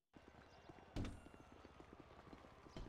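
A glass door swings open with a thud.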